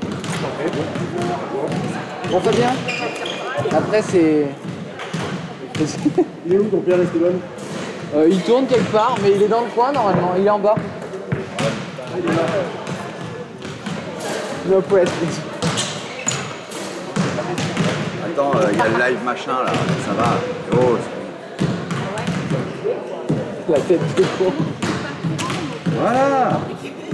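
Men and women chatter nearby in a large echoing hall.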